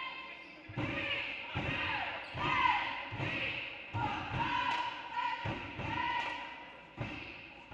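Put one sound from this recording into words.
Sneakers squeak on a hard gym floor in a large echoing hall.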